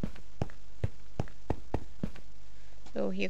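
A pickaxe chips at stone with quick repeated knocks.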